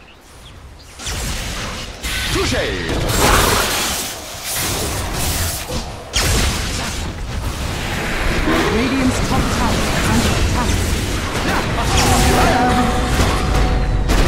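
Game spells crackle, zap and explode in a fast battle.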